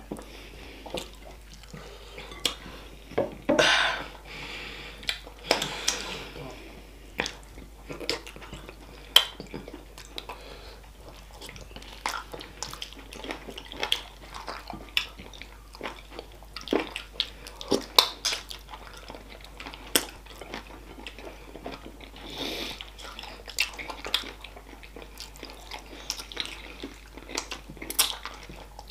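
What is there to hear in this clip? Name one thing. Fingers squish and rummage through saucy food on a plate.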